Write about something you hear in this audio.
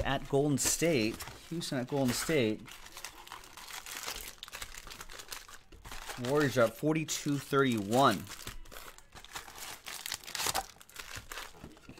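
Card packs rustle and slap as they are pulled from a box.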